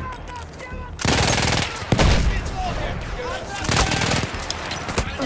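A machine gun fires in loud, rapid bursts.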